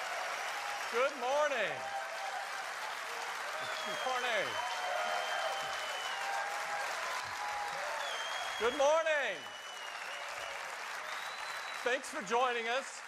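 A large crowd claps and applauds steadily.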